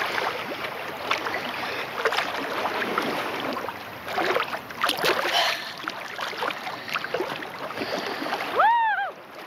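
Water splashes and laps around a swimmer.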